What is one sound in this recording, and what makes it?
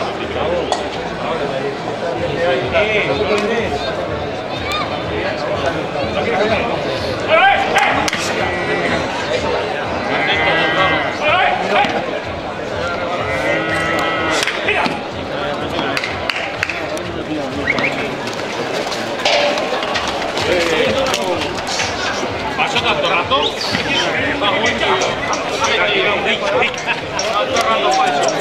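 A crowd of onlookers chatters and shouts nearby outdoors.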